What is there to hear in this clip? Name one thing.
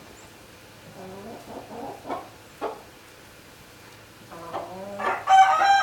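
Chickens cluck softly.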